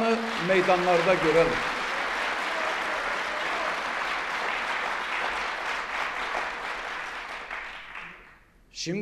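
A middle-aged man speaks forcefully into a microphone in a large echoing hall.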